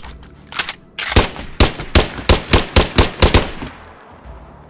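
Single gunshots ring out one after another.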